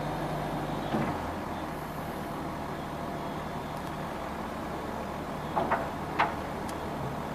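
Metal clanks sharply from a loader bucket.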